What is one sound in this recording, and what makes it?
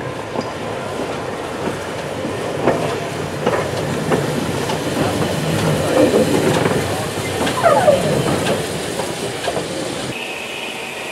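A steam train rumbles past close by.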